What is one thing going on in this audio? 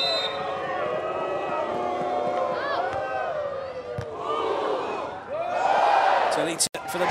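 A large crowd cheers and chants loudly in an arena.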